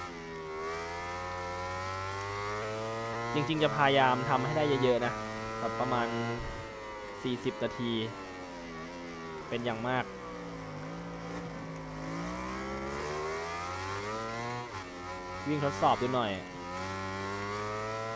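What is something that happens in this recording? A motorcycle engine roars, its pitch rising and falling as it speeds up and slows down.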